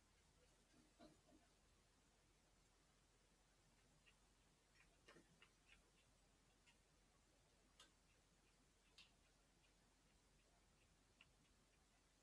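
A paintbrush taps and dabs softly against a palette.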